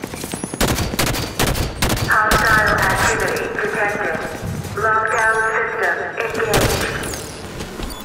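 Rapid gunfire cracks and booms close by.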